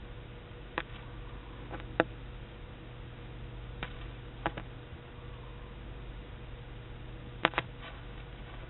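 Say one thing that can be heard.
Circuit breaker switches snap with sharp clicks.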